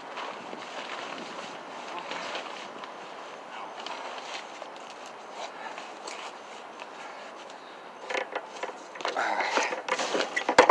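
Nylon tent fabric rustles and crinkles as someone crawls through it.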